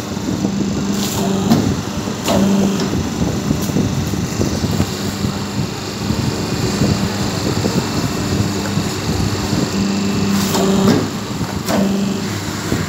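A machine press clunks now and then.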